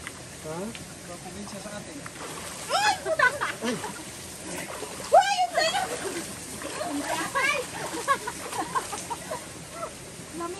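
Water splashes as people wade.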